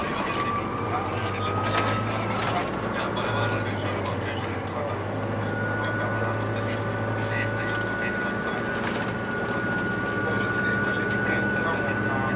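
A bus engine hums steadily from inside the bus.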